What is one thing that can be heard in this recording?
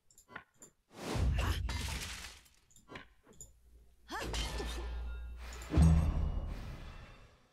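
Weapons clash and thud in a game battle.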